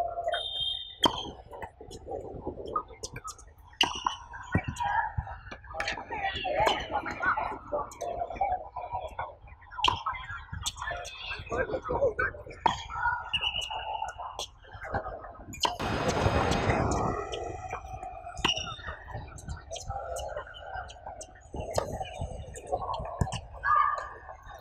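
A tennis ball is struck with rackets, with sharp pops back and forth.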